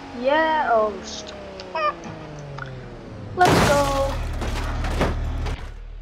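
A vehicle crashes and tumbles with loud metal impacts.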